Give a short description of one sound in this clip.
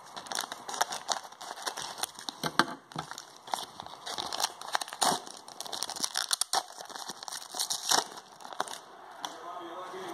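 A foil wrapper crinkles and tears as it is torn open.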